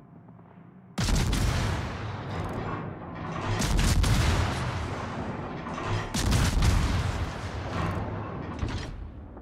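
Shells explode and rumble loudly.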